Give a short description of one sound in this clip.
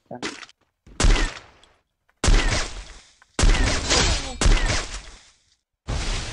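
A sniper rifle fires loud, booming shots.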